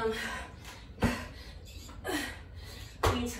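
Feet and hands thump on a hard floor.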